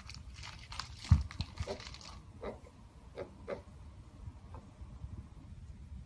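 Fabric rustles as a small animal moves under a blanket.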